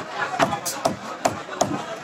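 A knife cuts fish on a metal counter.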